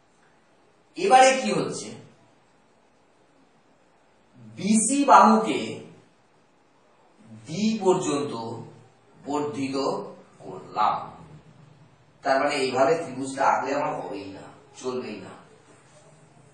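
A man speaks calmly in short phrases.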